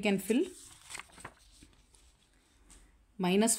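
Paper rustles as a sheet is moved.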